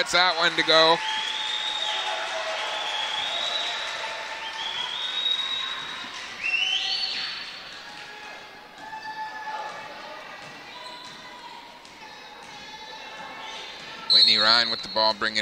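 A crowd of spectators murmurs.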